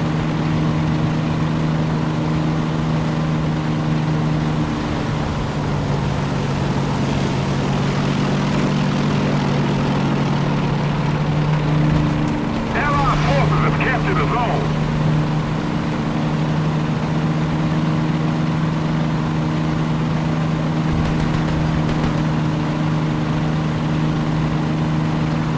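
A tank engine drones as the tank drives along.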